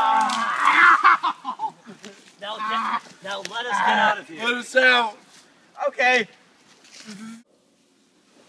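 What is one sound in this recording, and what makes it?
Young men talk and laugh excitedly close by.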